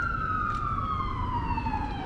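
A car drives past on the street.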